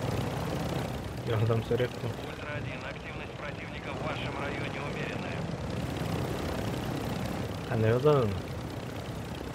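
A young man speaks into a microphone in short bursts.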